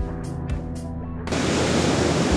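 A rock band plays amplified electric guitars.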